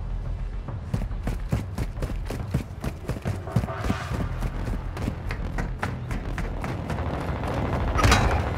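Footsteps run quickly over a hard floor.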